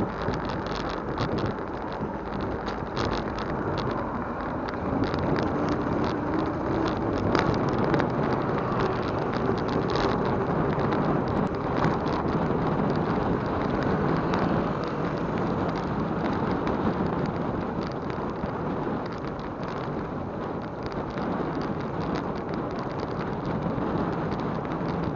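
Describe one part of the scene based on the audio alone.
Wind rushes steadily past as a bicycle rides along a road.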